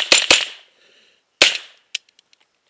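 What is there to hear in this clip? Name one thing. A rifle fires shots outdoors.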